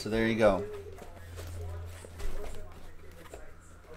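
Cardboard boxes slide and tap against each other.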